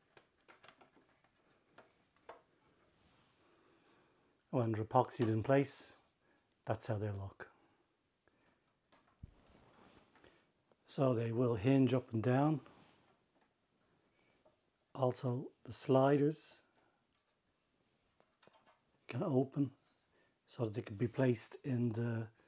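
Small metal hinged parts click lightly as they are handled.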